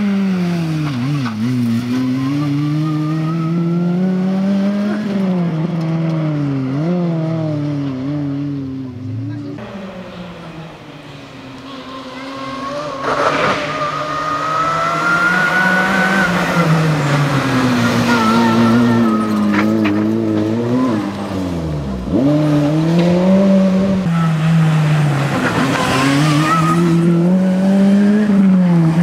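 A rally car engine revs hard and rises and falls in pitch as it passes close by.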